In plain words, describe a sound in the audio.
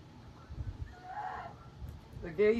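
A chicken clucks nearby.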